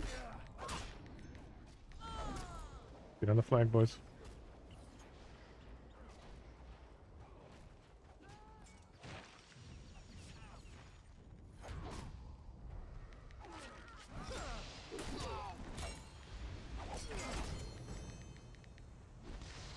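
Spells crackle and burst as fighters clash in a battle.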